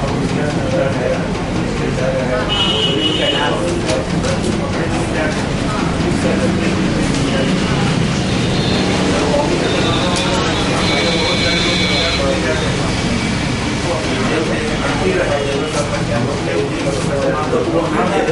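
Several men talk at once nearby.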